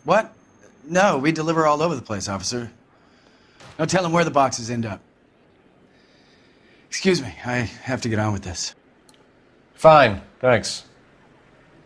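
A middle-aged man answers with animation.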